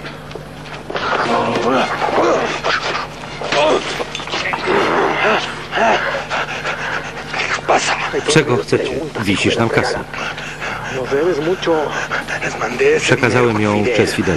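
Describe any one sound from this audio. A man speaks tensely and threateningly, close by.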